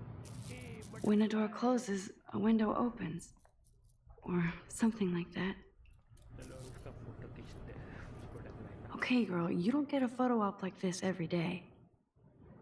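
A young woman speaks quietly and thoughtfully to herself, close by.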